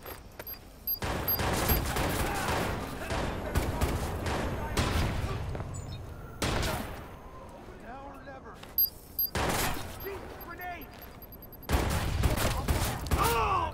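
Gunfire from an assault rifle cracks in bursts.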